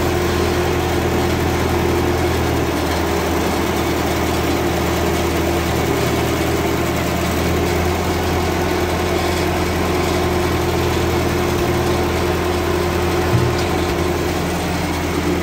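A machine's engine runs with a steady, low hum.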